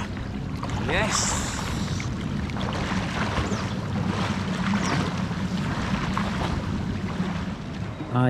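Water splashes as a swimmer kicks and strokes.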